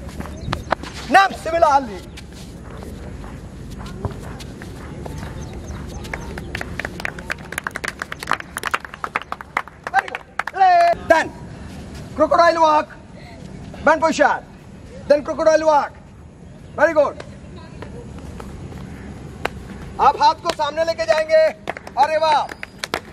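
A man shouts counts loudly outdoors.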